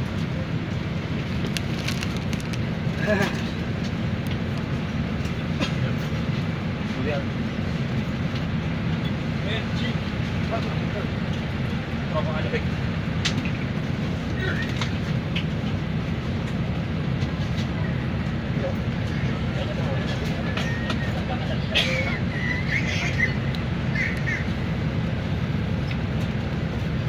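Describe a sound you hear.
Several men talk nearby in a group.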